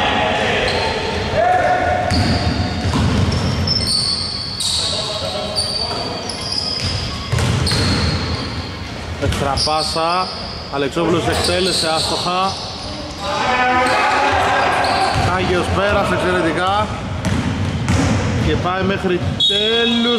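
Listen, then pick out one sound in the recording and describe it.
Sneakers squeak sharply on a wooden court, echoing in a large hall.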